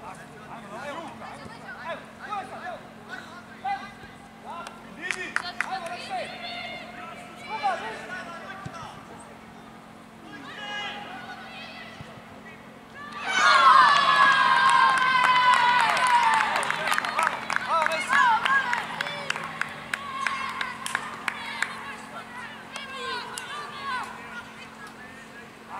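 Young boys shout to each other across an open field.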